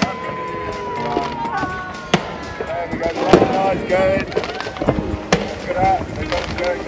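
Fireworks bang and crackle in the distance.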